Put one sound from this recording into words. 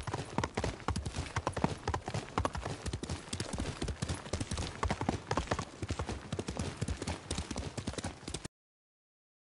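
Horse hooves gallop quickly along a path.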